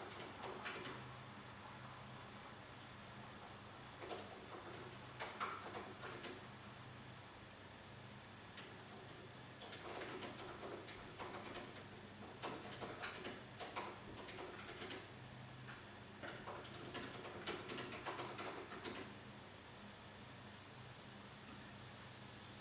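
Fingers type quickly on a laptop keyboard.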